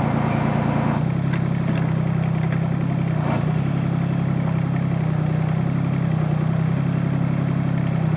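Soil and stones scrape and clatter in an excavator bucket.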